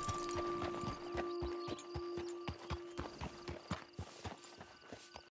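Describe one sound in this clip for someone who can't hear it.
Horse hooves clop steadily on hard ground.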